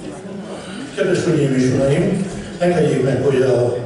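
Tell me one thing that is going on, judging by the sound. A choir of women sings loudly.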